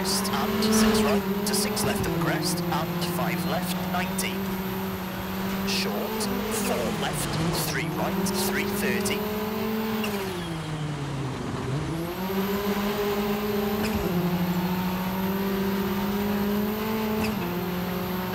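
A rally car engine roars and revs up and down through gear changes.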